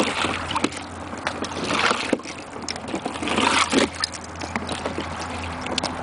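Hands break up thin ice floating in a plastic tub of water.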